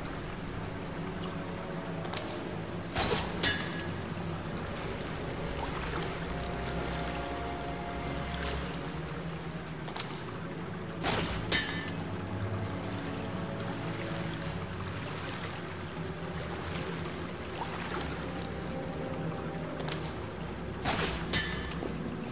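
Water rushes and churns steadily in an echoing tunnel.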